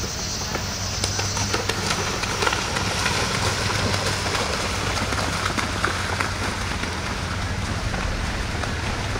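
Water splashes loudly as a horse gallops through it.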